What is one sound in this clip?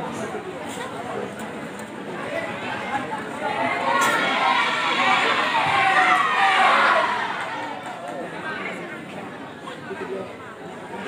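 A large crowd of children chatters and shouts.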